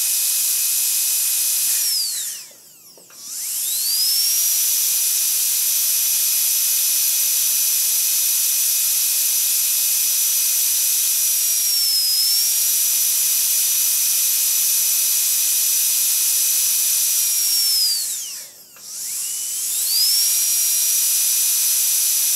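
A loud siren wails through a horn loudspeaker, holding a high steady pitch and twice winding down and rising back up.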